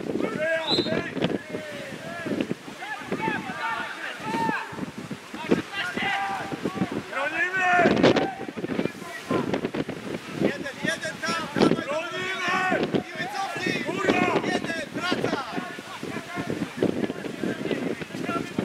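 Men call out to each other outdoors during a football match.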